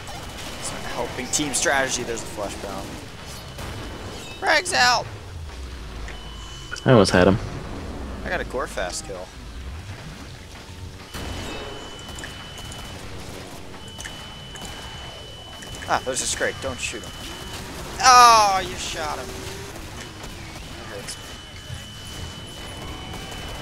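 A sword swings and slashes.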